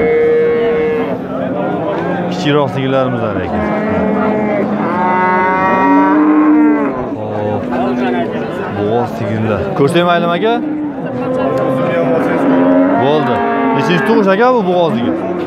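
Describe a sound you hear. A crowd of men chatter and call out all around outdoors.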